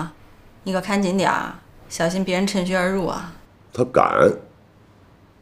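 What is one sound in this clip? A woman speaks earnestly up close.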